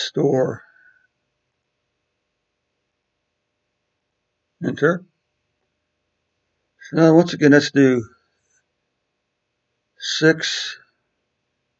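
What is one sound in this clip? A man speaks calmly into a microphone, in short phrases.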